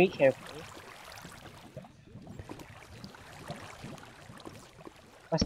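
Water splashes as someone swims.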